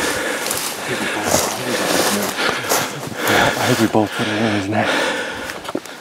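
A man speaks quietly and closely with animation.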